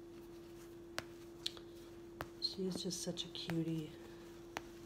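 Snaps on a baby's sleeper pop open with small clicks.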